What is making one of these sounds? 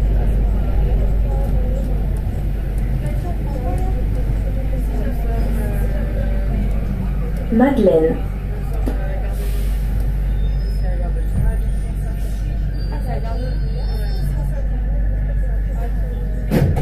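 A metro train rumbles steadily along the rails through a tunnel.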